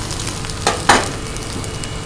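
A metal spatula scrapes and knocks against a wok.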